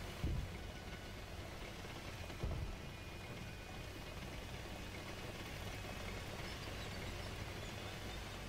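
A tank engine rumbles steadily as the tank drives over rough ground.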